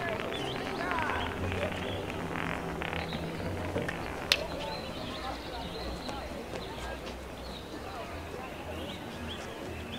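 A small ball rolls slowly over cobblestones.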